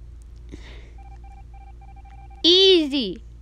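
Short electronic beeps tick quickly as text types out.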